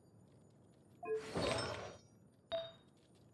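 A bright magical chime swells and sparkles.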